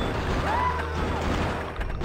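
An explosion bursts with a roar.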